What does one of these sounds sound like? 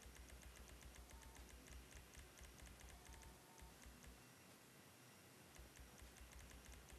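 Soft menu clicks tick rapidly, one after another.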